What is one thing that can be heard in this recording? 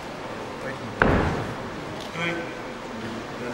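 Punches land on a fighter lying on the mat.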